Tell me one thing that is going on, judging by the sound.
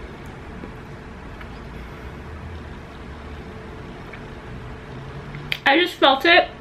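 A young woman chews food close to a microphone.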